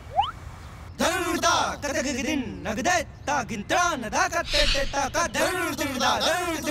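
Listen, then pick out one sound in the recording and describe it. A young man raps with animation.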